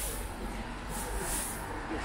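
A broom scrapes across the pavement.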